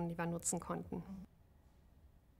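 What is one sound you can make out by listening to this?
A woman speaks calmly and close to a microphone.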